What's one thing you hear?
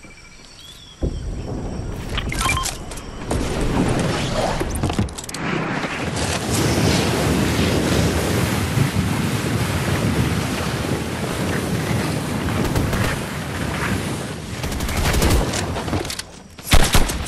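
Wind rushes steadily past during a fast glide through the air.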